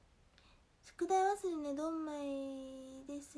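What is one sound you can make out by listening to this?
A young woman speaks close to a microphone in a long, drawn-out voice.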